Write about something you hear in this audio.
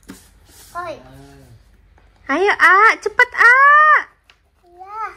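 A young girl laughs.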